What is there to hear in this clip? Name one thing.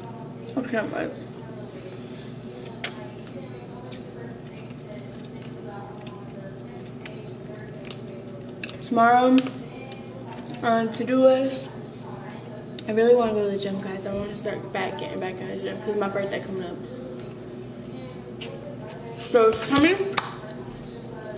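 A young woman speaks close to a microphone, calmly and with pauses.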